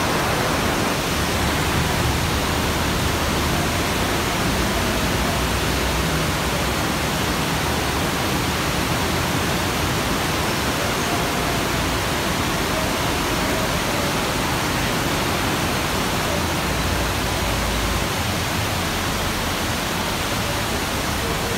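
Rain drums on a canopy overhead.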